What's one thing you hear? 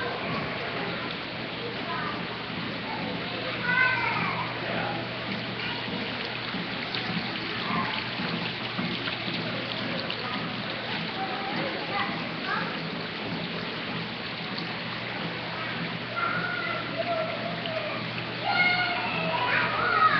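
Water splashes as small children play in it.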